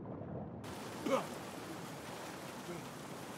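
A man bursts out of water with a splash.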